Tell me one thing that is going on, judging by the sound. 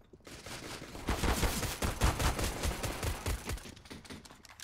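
A silenced pistol fires several quick shots.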